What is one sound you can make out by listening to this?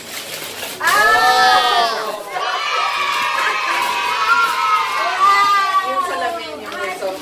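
A young girl squeals with excitement.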